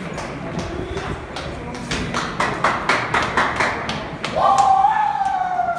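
Football players' cleats clatter on a concrete floor.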